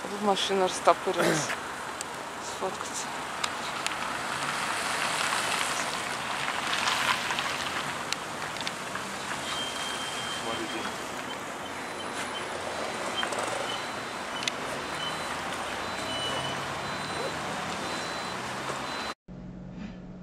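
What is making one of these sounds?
Traffic rumbles and hisses steadily on a city street.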